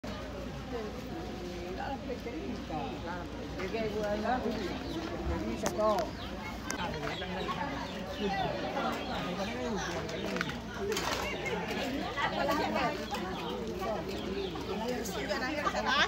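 A crowd of people chatters around.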